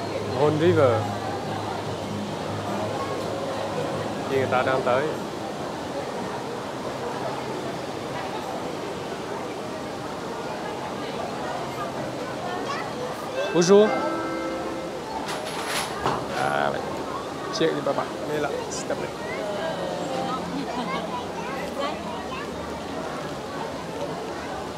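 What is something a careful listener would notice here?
Water splashes and gurgles steadily around a ride boat.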